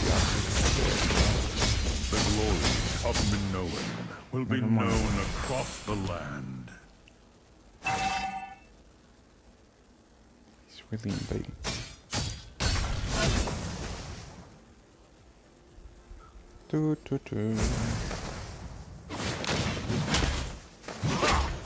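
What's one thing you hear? Game characters clash with magic blasts and hits.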